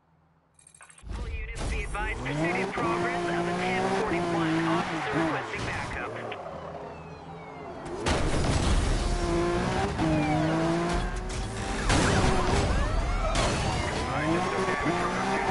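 A sports car engine roars and revs hard.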